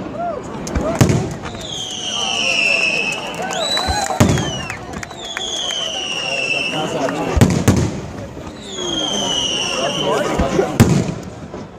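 Fireworks explode overhead with single sharp bangs.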